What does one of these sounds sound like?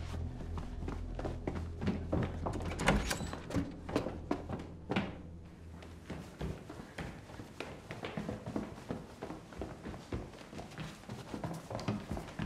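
Footsteps hurry across a wooden floor.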